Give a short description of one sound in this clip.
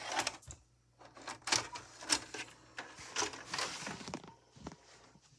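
A tape player's mechanism whirs and clicks as it loads.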